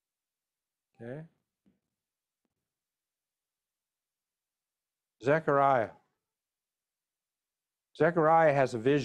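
A man speaks calmly through a microphone on an online call, in short phrases with pauses.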